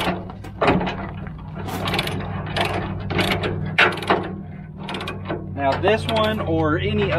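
A metal chain rattles and clinks.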